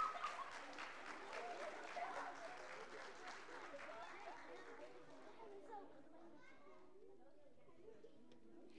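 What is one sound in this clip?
A crowd of children murmurs and chatters.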